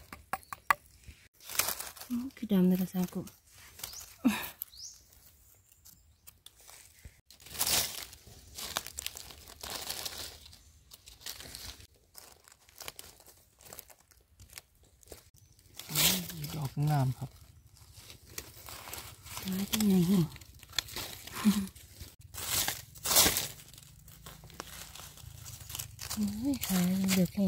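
Dry leaves rustle and crackle as hands move through them.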